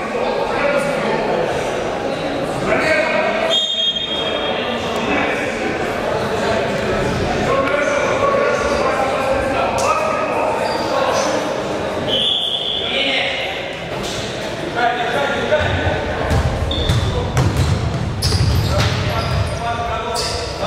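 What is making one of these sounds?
A crowd of young people shout and chatter in a large echoing hall.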